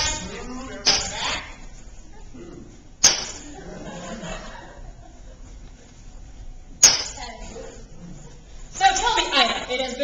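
Young actors speak on a stage, heard from the audience in a large hall.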